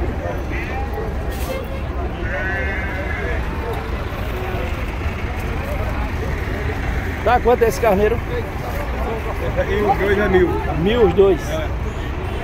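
Men talk in a busy outdoor crowd.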